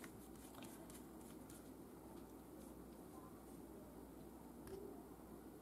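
Small plastic caps click softly as they are handled.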